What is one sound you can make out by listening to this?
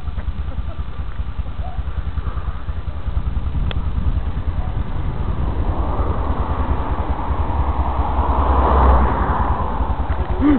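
A quad bike engine idles with a low, throbbing rumble that grows louder near the end.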